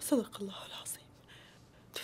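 A woman cries out in distress nearby.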